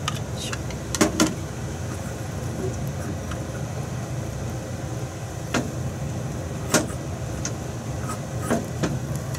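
A metal pan scrapes and knocks against the stove grate.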